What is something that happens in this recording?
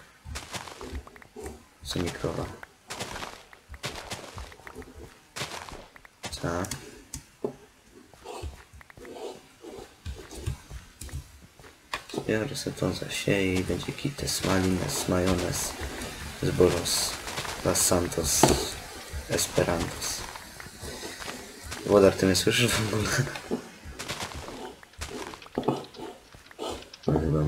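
Tall crops are cut down with quick, soft crunching sounds.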